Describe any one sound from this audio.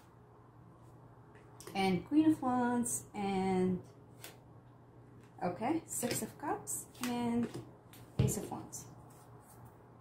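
Playing cards are laid down on a table with light taps.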